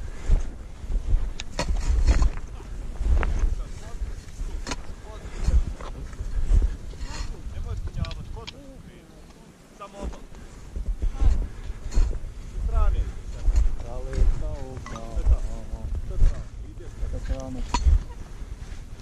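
Boots crunch and scrape on hard snow.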